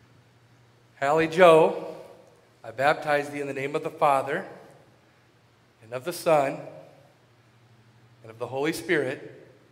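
A man speaks calmly and clearly through a microphone.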